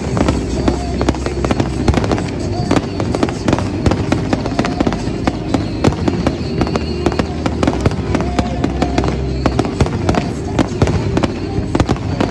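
Fireworks burst with rapid booms and sharp cracks outdoors.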